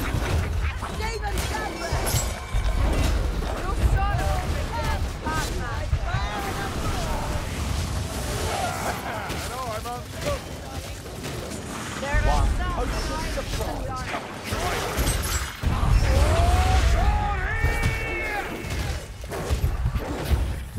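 Creatures snarl and shriek as they attack.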